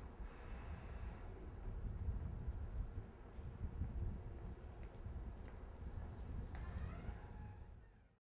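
Footsteps tap on pavement at a distance.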